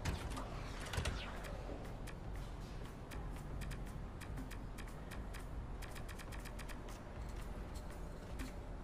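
Short game menu clicks tick quickly as options are scrolled through.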